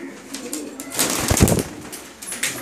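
A pigeon flaps its wings in a quick burst.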